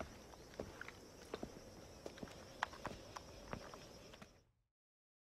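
Footsteps tap on a stone pavement.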